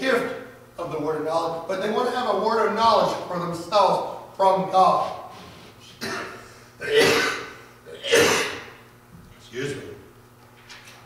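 A man preaches with animation into a microphone in an echoing hall.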